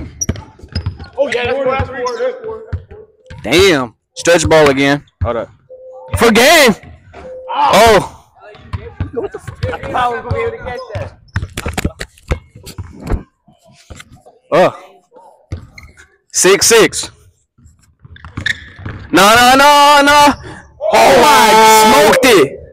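Basketballs bounce on a hard floor, echoing in a large hall.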